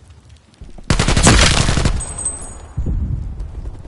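A rifle fires a rapid burst of loud shots.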